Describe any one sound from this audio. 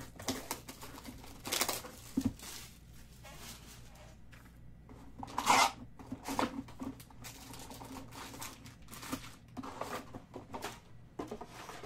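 Cardboard packs rustle and scrape as hands handle them.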